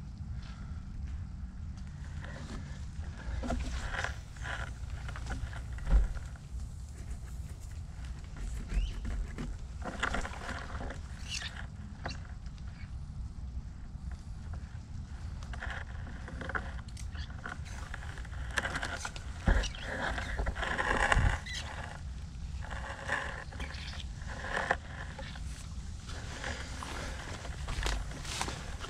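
Footsteps squelch and rustle on a muddy trail.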